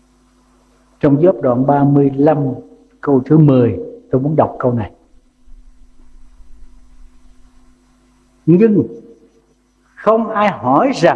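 An elderly man speaks calmly through a microphone, pausing between phrases.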